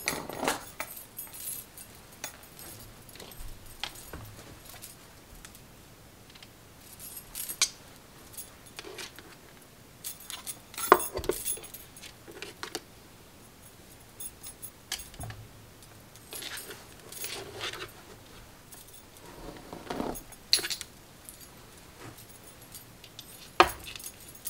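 A hairbrush swishes through long hair.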